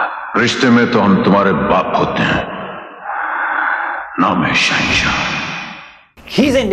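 A man speaks in a low, intense voice, close by.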